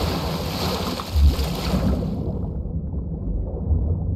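Water churns and bubbles around a swimmer.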